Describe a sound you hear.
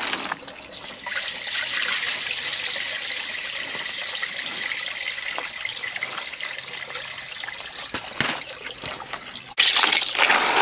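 Water pours out of a tilted basin and splashes.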